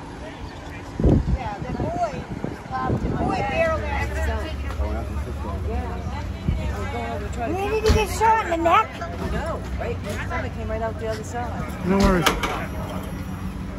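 A woman talks with animation close by, outdoors.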